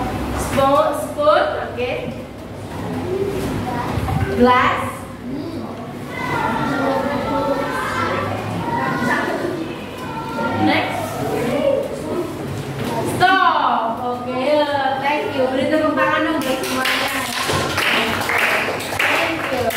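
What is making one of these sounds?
A young woman speaks clearly to a class in a room with a slight echo.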